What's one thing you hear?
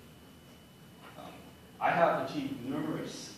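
A young man speaks calmly in a room.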